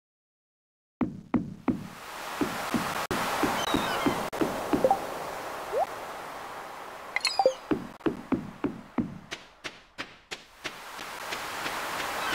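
Footsteps thump steadily on wooden boards.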